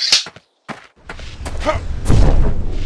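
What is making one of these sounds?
Magic crackles and whooshes from a pair of hands.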